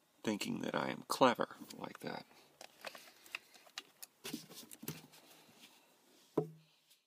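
Hands click and rattle plastic panel parts close by.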